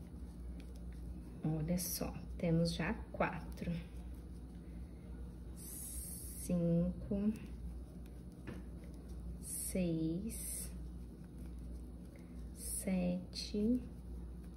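A crochet hook softly draws yarn through stitches.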